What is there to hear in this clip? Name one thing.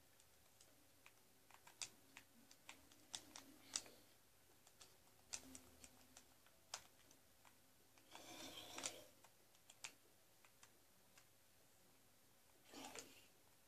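A video game plays short clicking sound effects through a television speaker.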